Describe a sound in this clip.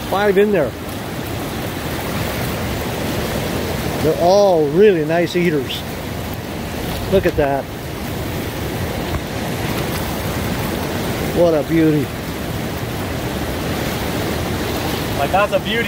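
A river rushes and splashes steadily nearby.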